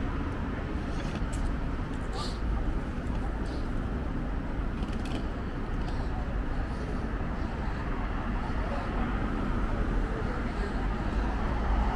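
A rolling suitcase rattles along the pavement.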